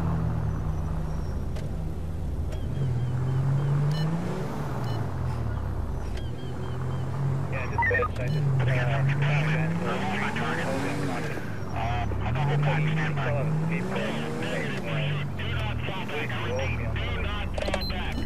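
A car engine revs up and down as the car drives.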